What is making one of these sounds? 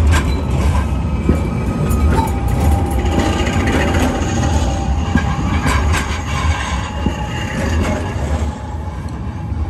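A tram rumbles past close by, then fades away.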